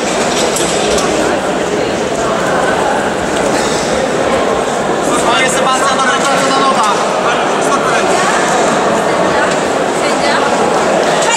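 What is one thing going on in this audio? A crowd of spectators murmurs in a large echoing hall.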